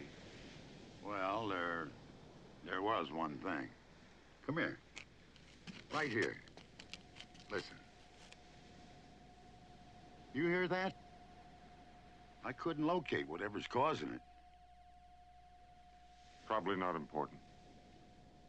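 An older man speaks in a strained, pleading voice, close by.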